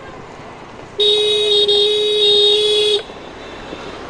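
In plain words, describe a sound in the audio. A scooter horn honks in one long blast.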